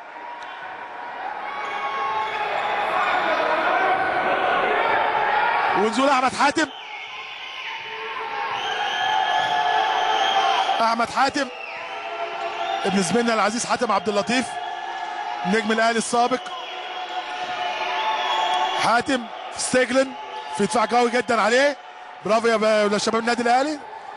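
A crowd in a large hall cheers and roars.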